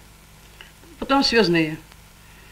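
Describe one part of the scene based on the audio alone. An elderly woman speaks calmly and clearly, close by.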